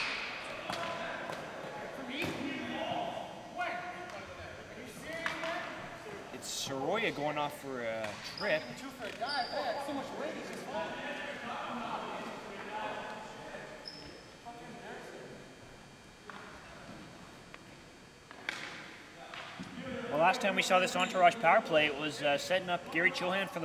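Hockey sticks clack against a ball and the floor.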